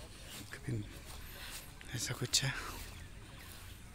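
Footsteps swish softly on grass.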